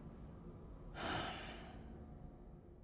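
A man breathes out in a long, heavy sigh close by.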